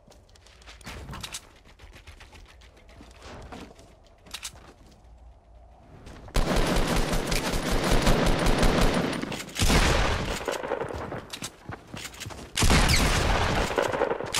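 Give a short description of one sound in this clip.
Wooden walls and ramps clatter as they are built in quick succession.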